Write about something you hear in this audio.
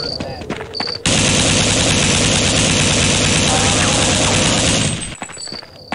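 A shotgun fires loudly in rapid blasts.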